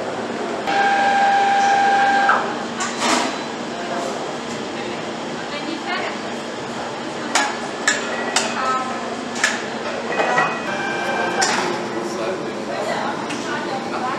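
Metal parts clink and clank.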